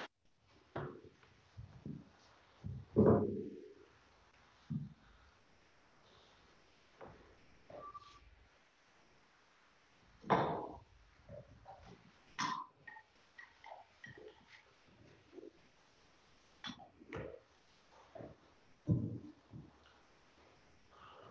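Objects knock and clink softly on a wooden table.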